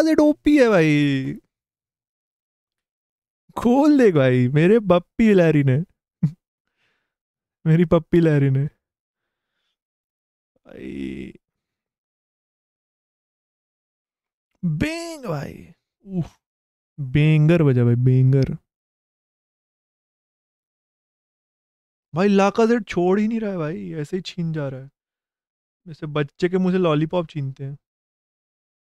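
A young man talks with animation close to a microphone, in short bursts with pauses.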